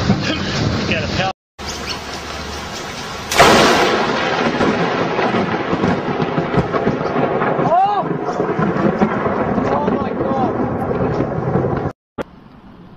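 Heavy rain pours down in strong, gusting wind.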